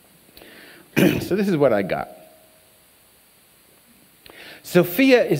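An elderly man speaks with animation into a microphone, heard through a loudspeaker in a large room.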